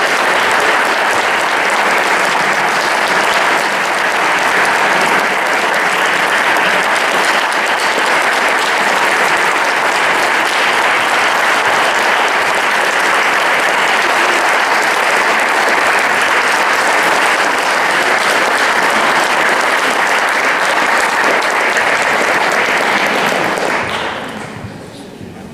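An audience applauds steadily in a large echoing hall, then the clapping fades away.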